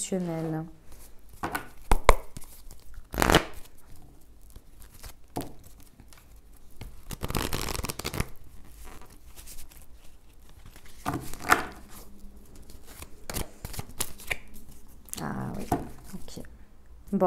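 Cards shuffle and riffle with quick soft flicks close by.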